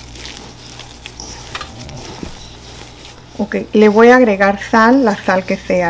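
Hands knead crumbly dough in a metal bowl with soft squishing and scraping.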